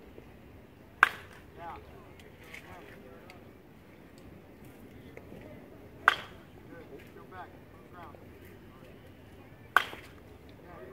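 A metal bat sharply pings as it hits a baseball, several times.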